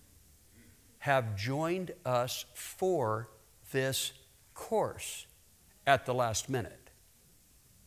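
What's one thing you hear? A middle-aged man speaks with animation through a microphone in a large echoing hall.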